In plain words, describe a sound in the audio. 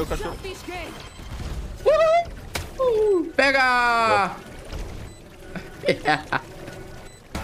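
A young man talks and exclaims with animation into a close microphone.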